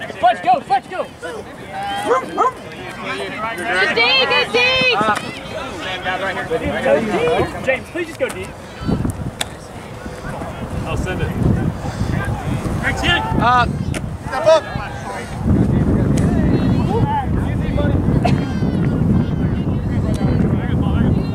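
Young men shout and call out to each other outdoors at a distance.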